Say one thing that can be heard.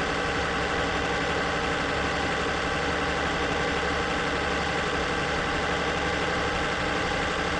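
A truck engine hums steadily while driving at speed.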